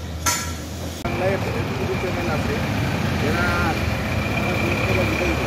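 A bus engine idles and rumbles nearby.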